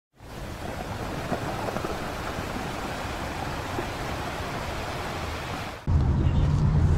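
Water splashes and churns close by.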